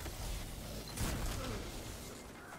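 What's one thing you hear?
An explosion booms in a video game.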